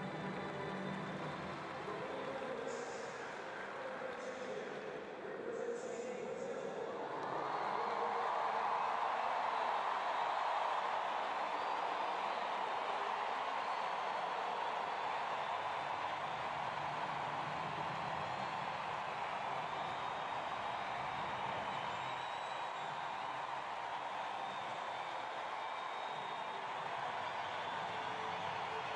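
A large crowd murmurs and cheers in a vast open stadium.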